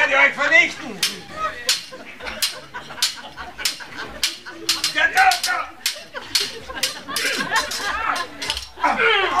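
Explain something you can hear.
Swords clash and clang again and again.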